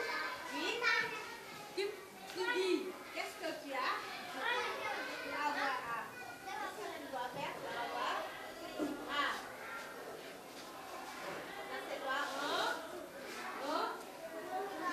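Young children chatter and call out in a room.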